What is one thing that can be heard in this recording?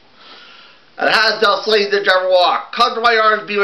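A man speaks animatedly in a playful puppet voice, close by.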